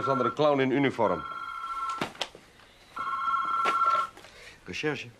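A telephone rings in steady bursts.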